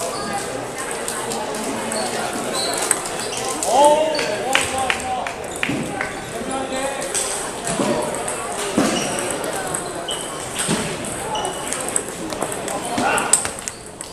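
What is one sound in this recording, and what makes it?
Table tennis balls click off paddles and tables in a large echoing hall.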